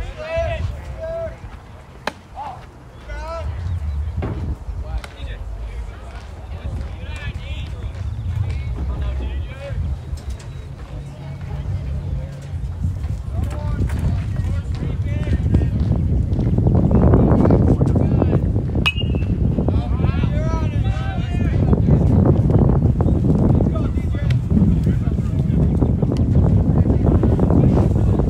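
Men call out in the distance across an open field.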